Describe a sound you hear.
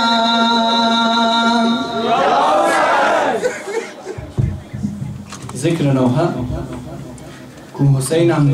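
A young man chants loudly into a microphone, heard through a loudspeaker in an echoing room.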